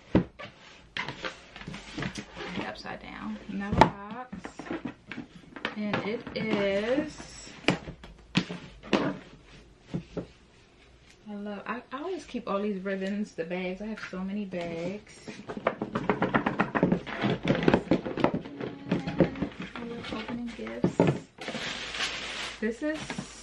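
Cardboard and paper rustle as a box is handled.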